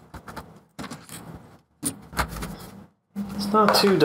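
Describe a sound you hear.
A metal panel rattles as it is lifted off.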